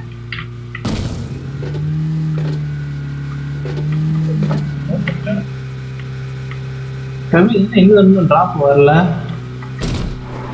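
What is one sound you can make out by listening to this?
A car engine hums steadily while driving over rough ground.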